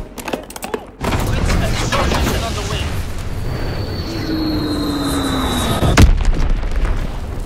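Deep explosions rumble steadily.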